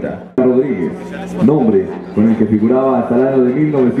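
A marching band plays brass and drums.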